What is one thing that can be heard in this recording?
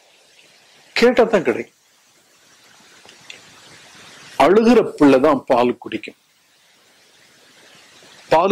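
An elderly man speaks slowly and solemnly into a microphone, with pauses.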